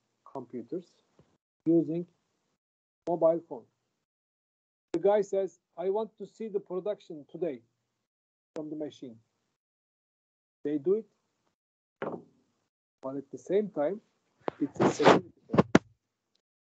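A man speaks calmly in short phrases through an online call microphone.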